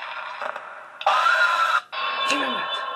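A loud screech blasts suddenly.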